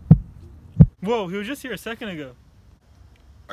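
A young man speaks with animation up close.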